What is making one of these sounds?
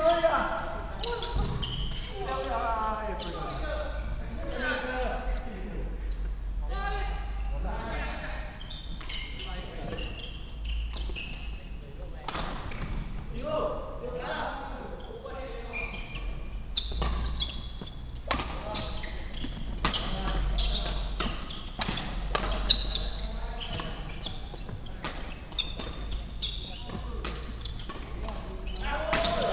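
Young men talk and call out across a large echoing hall.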